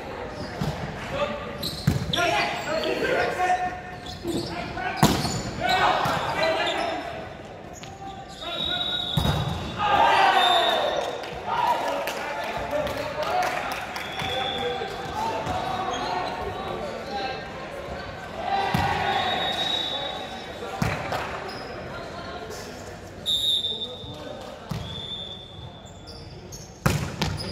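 Young men call out and shout across a large echoing gym.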